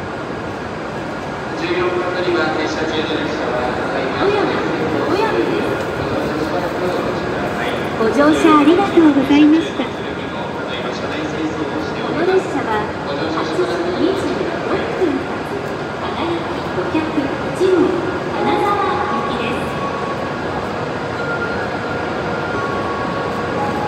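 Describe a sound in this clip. A train hums steadily at a platform.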